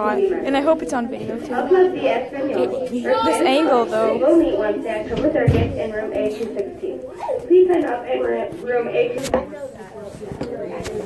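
A teenage girl talks close by with animation.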